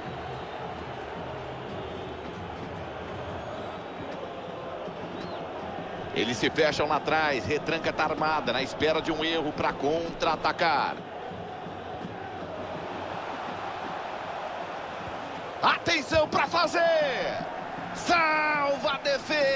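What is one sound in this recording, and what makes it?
A large crowd murmurs and roars steadily in a big stadium.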